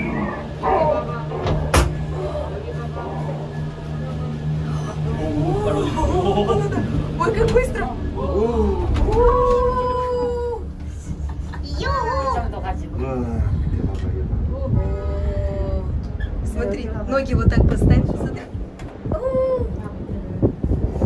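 Women talk and exclaim excitedly close by.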